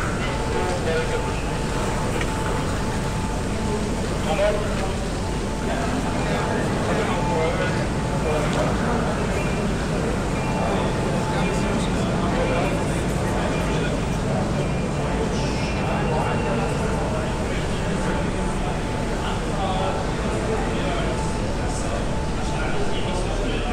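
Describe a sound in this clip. A crowd of men and women chatter in a large echoing space.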